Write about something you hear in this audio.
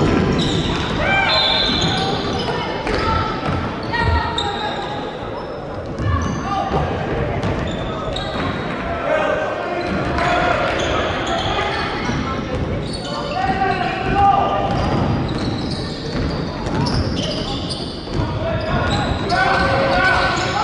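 Many children shout and chatter in a large echoing hall.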